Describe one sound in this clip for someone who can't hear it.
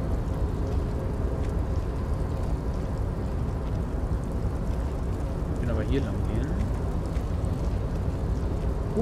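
Footsteps tap on a metal walkway.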